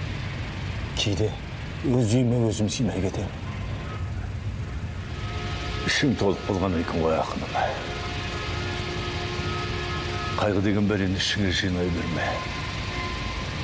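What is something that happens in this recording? An elderly man speaks in a low, gruff voice up close.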